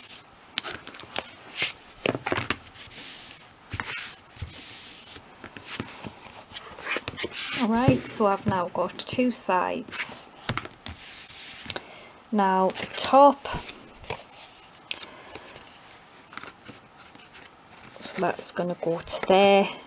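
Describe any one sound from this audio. Stiff card stock rustles and slides under hands.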